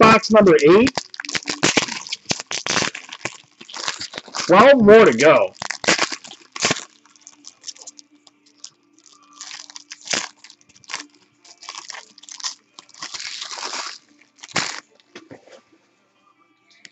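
Foil wrappers crinkle and rustle close by.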